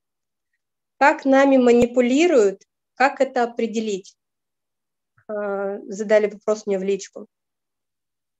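A woman speaks calmly and close, as if over an online call.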